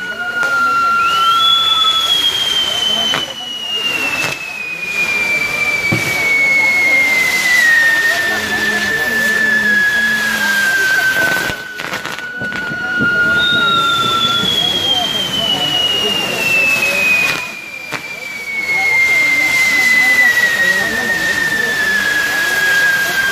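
Fireworks whistle, each falling slowly in pitch.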